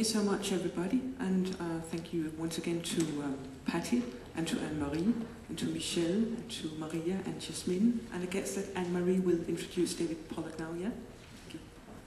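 A middle-aged woman speaks steadily into a microphone.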